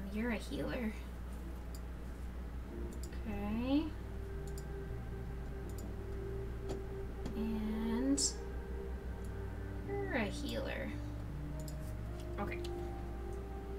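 A young woman talks casually into a microphone, in short bursts.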